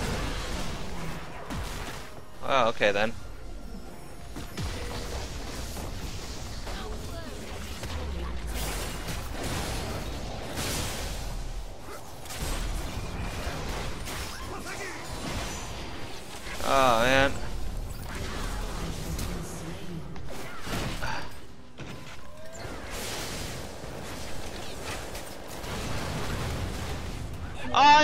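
Fantasy game combat effects clash, zap and whoosh.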